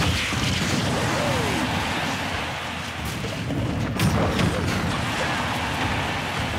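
A powerful energy blast whooshes loudly.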